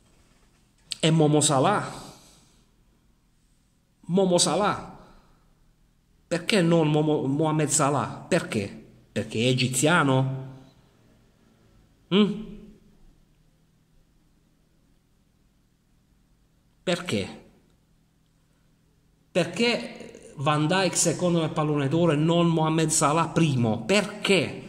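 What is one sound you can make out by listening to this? A middle-aged man speaks close to the microphone with animation, in short bursts with pauses.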